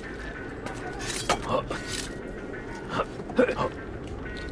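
Hands grip and scrape on stone while climbing a wall.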